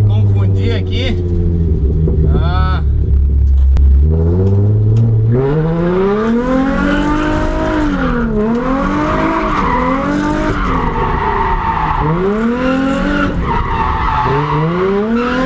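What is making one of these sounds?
A car engine idles loudly, then revs hard, rising and falling repeatedly.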